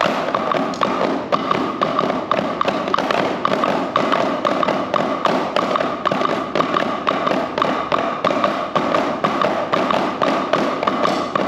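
Drumbeats echo in a large hall.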